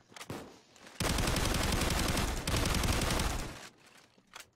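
Shotguns blast loudly in rapid bursts.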